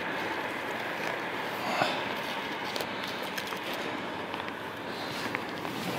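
Frosty twigs snap and crackle close by.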